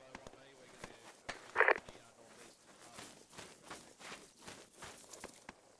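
Footsteps tread on dry ground at a steady walking pace.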